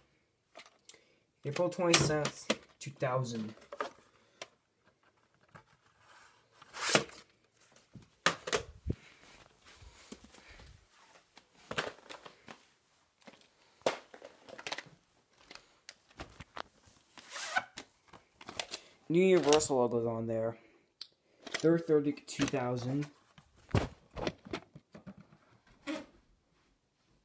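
Plastic cases knock and clatter as they are handled close by.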